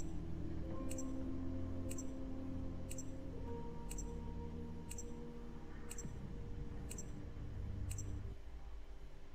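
Calm game music plays and then stops.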